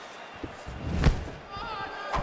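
A kick lands with a heavy thud.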